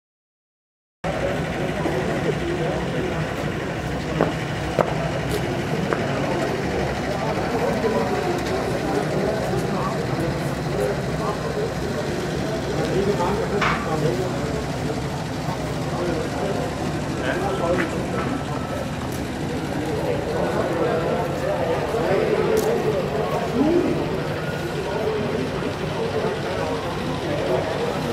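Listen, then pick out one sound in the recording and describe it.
A crowd of adults chatters at a distance outdoors.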